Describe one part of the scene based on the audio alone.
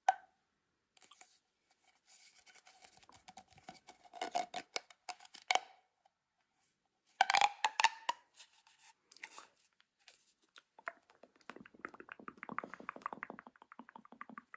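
A plastic pop tube rustles and squeaks softly as fingers rub along its ridges.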